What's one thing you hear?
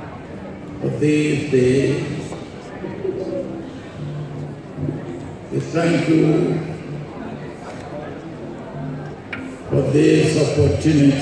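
An elderly man speaks slowly and solemnly into a microphone in a large echoing hall.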